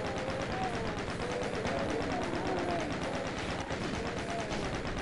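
A video game energy gun fires in a rapid, steady stream of buzzing shots.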